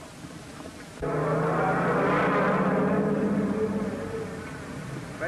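A motorcycle engine runs close by.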